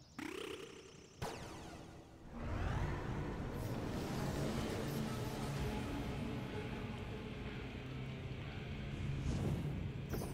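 Video game sound effects whoosh and rumble.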